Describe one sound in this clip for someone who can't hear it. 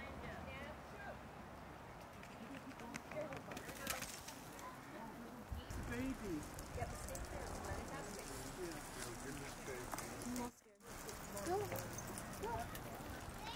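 A goat's hooves clop on pavement.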